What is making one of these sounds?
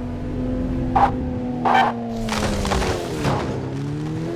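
A car crashes through bushes with rustling and thuds.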